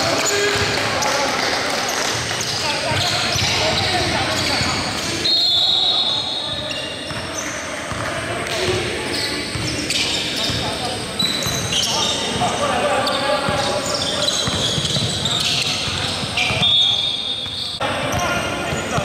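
Players' footsteps patter and thud across the court.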